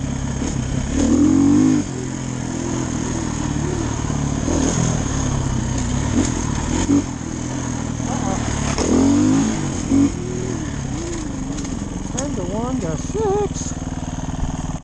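Tyres crunch over dirt and gravel.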